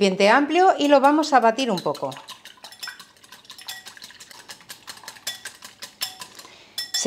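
A wire whisk beats eggs in a glass bowl with quick, rapid clicks.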